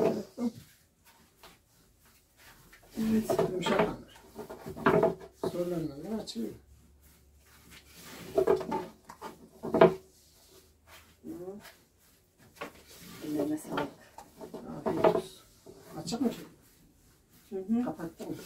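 An elderly woman talks calmly nearby.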